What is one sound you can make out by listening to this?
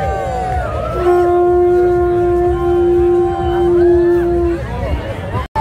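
A conch shell is blown in one long, steady, loud note.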